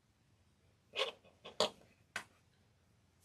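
Small metal tools click against metal pieces.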